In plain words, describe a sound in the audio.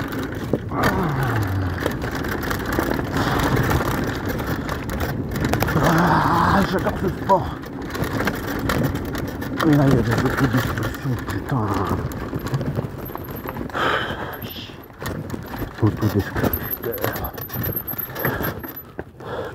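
Wind rushes past as a bicycle speeds downhill.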